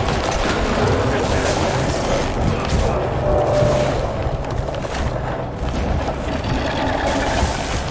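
Magic energy crackles and whooshes.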